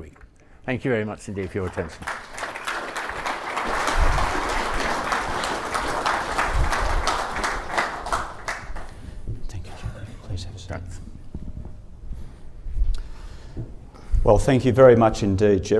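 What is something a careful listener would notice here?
An elderly man speaks calmly into a microphone in a large hall.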